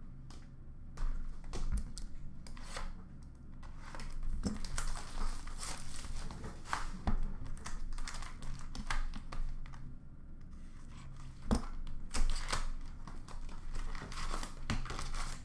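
Plastic card cases clatter and tap as they are handled.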